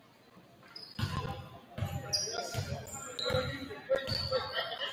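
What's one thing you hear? A basketball bounces on a wooden floor in a large echoing gym.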